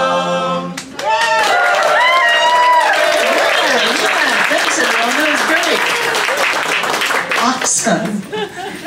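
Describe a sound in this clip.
A small crowd claps and cheers.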